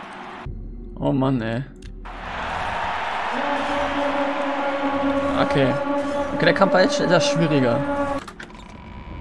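A magic spell whooshes and shimmers with a ringing tone.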